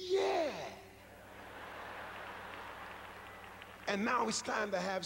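An audience laughs and murmurs.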